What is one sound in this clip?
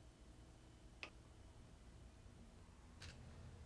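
Slices of food tap softly onto a plate.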